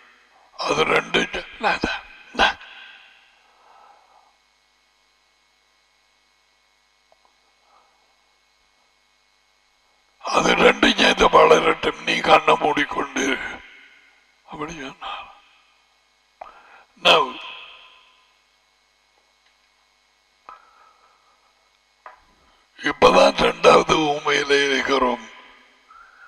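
A middle-aged man speaks with animation into a headset microphone, pausing often.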